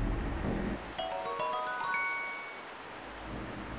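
A short rising chime melody plays.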